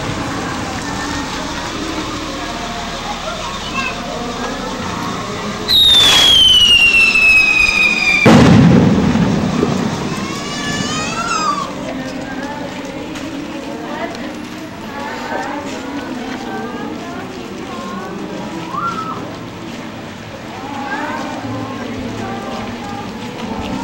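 A crowd of people murmurs and calls out outdoors.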